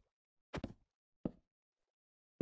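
A wooden block breaks with a short crunch.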